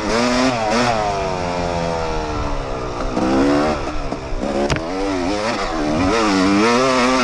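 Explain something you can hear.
A dirt bike engine revs loudly, rising and falling in pitch.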